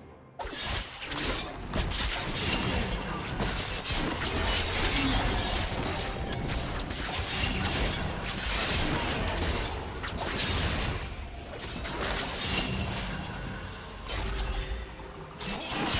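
Game sound effects of spells and weapons clash in a fast fight.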